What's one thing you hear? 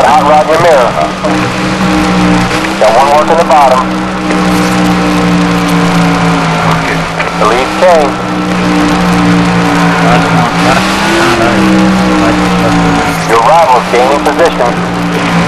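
Other race cars roar past, their engines rising and falling in pitch.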